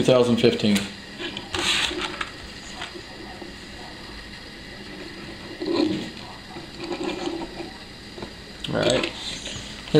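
Small plastic toy wheels roll on a wooden table.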